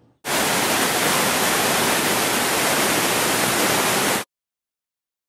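A waterfall roars as it plunges into a pool.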